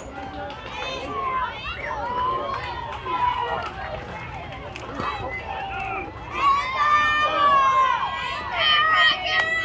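Young girls cheer and chant loudly together outdoors.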